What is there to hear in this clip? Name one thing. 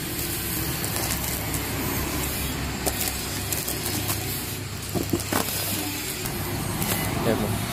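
Packaged items clatter together inside a cardboard box.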